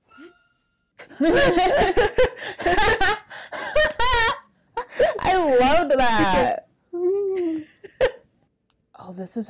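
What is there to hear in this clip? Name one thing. A young woman talks animatedly into a microphone.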